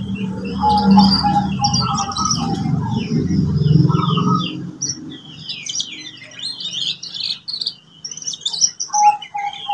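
A canary sings a fast, warbling song with high trills close by.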